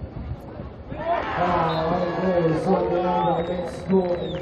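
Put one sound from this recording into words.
A crowd cheers and chants loudly.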